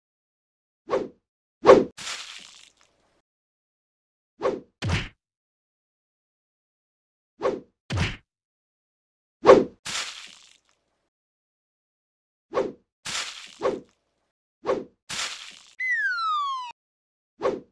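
Sword blows strike with sharp thuds and swishes.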